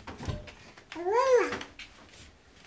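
A toddler squeals loudly up close.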